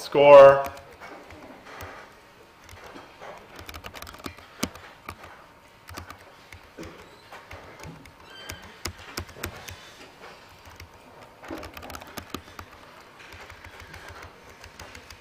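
Computer keys click as someone types.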